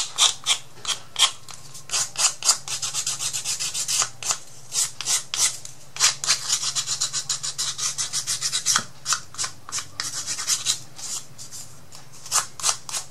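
Paper rustles and crinkles between fingers close by.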